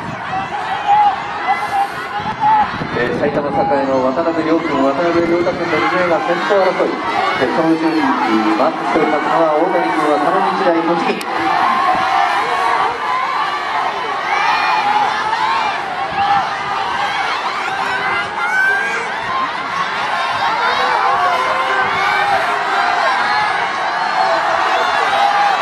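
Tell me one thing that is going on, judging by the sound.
A crowd of spectators shouts and cheers all around.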